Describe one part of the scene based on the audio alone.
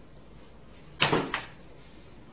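A hand lands with a sharp slap.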